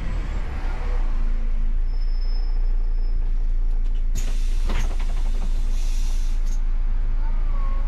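A bus engine idles with a low steady hum while the bus waits behind another bus.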